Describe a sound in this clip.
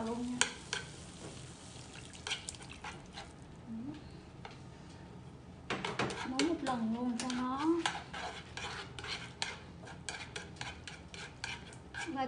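Chopsticks scrape and tap against a frying pan.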